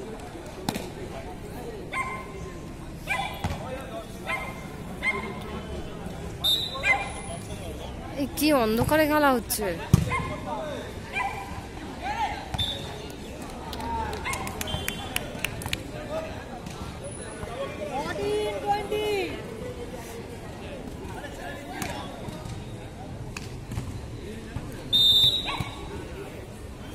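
Young men shout and call out during a ball game outdoors.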